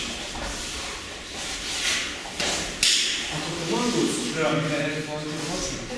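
Bare feet thud and shuffle on mats.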